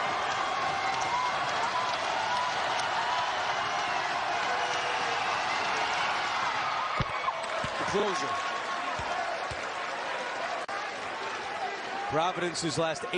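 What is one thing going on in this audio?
A large crowd roars and cheers in an echoing hall.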